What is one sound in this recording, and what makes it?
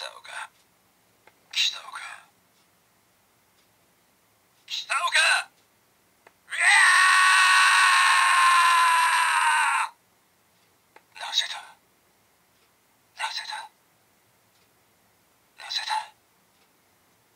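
A toy belt plays short recorded voice calls through a small tinny speaker.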